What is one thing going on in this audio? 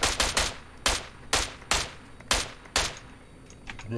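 Rifle shots fire in quick single bursts.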